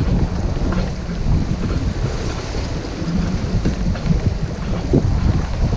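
Strong wind buffets loudly, as if blowing across a microphone outdoors.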